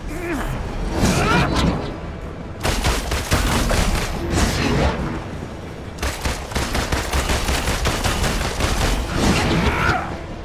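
Blows thud and crash in a fight.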